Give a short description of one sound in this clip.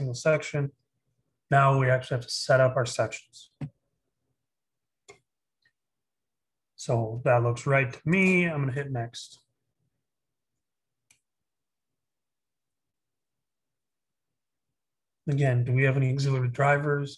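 A man speaks calmly and closely into a microphone, with pauses.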